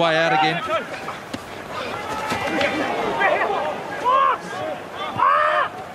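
A crowd roars in a large open stadium.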